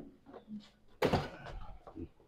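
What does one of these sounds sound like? A heavy slab of meat thuds onto a table.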